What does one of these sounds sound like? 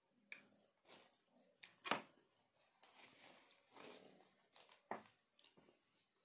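An elderly woman chews and slurps food close by.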